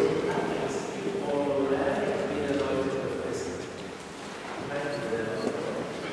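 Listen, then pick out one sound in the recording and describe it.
A choir of children sings together in a large, echoing hall.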